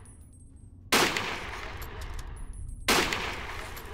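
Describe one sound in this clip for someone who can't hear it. A rifle fires two loud shots that echo in an enclosed space.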